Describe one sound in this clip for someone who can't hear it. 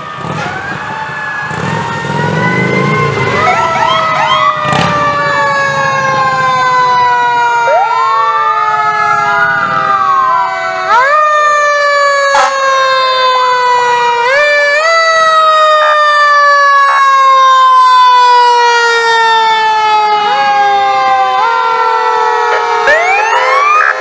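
Several sirens wail together, rising and falling, loud and close.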